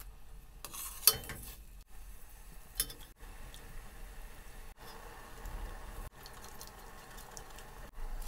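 A metal strainer scrapes against the side of a pot.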